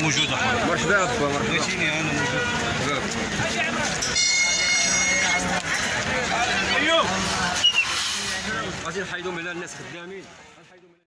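A crowd of men talks and shouts loudly outdoors.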